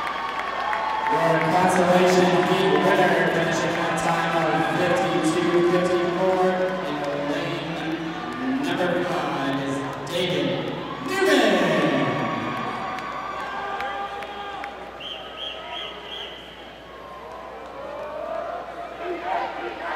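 A crowd cheers in a large echoing hall.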